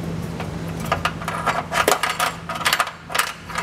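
Hands fiddle with plastic parts, which click and rattle sharply.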